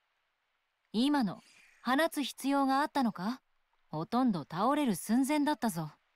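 A young woman speaks calmly and coolly, close by.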